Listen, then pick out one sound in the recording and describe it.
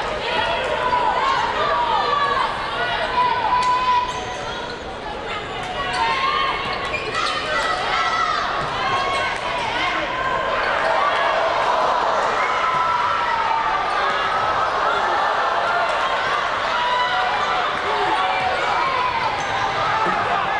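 A small crowd murmurs in a large echoing gym.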